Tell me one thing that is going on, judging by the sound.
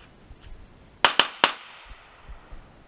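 A pistol fires three quick, loud shots that echo outdoors.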